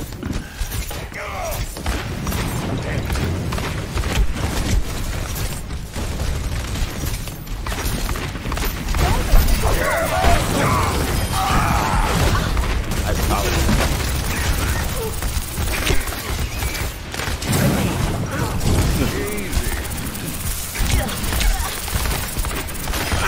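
A game weapon fires in rapid bursts.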